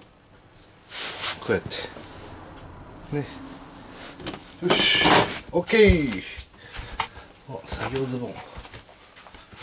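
Fabric rustles as it is handled close by.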